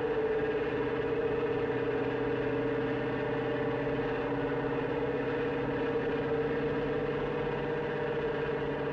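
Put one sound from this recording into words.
Factory machinery hums steadily as a large pipe rolls along.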